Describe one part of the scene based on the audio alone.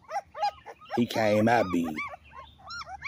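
A puppy yelps loudly.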